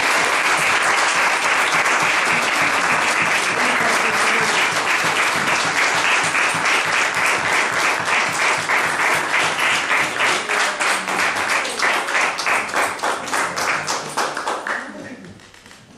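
A crowd claps loudly and steadily, then the clapping dies away.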